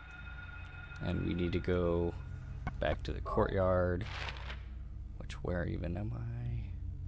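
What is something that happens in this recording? An adult man speaks through a headset microphone.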